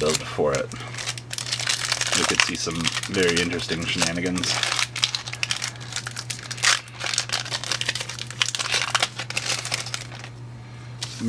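A foil wrapper crinkles and tears as it is opened by hand.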